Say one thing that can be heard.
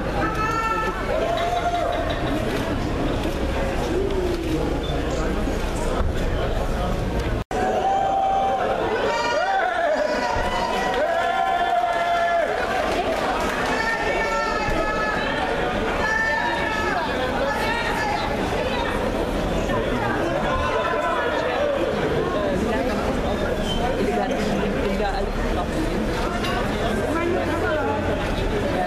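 A large crowd chatters and calls out all around, close by.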